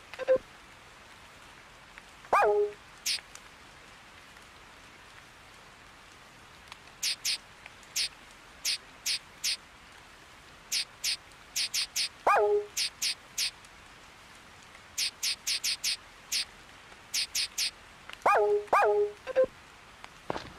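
Short menu blips and clicks sound as a cursor moves through options.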